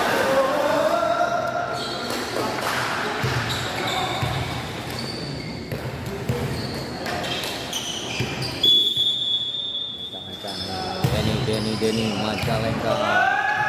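A crowd of spectators chatters and cheers in the distance.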